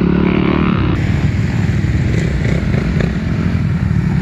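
A dirt bike engine buzzes in the distance and draws nearer.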